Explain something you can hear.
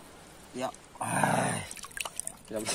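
Water splashes briefly.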